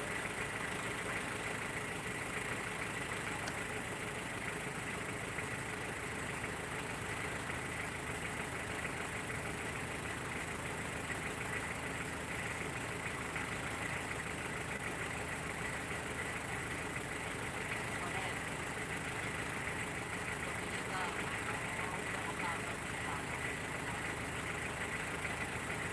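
A truck engine idles steadily.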